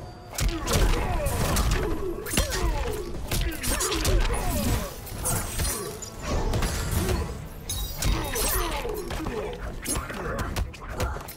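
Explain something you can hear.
Heavy punches and kicks thud and crack in quick succession.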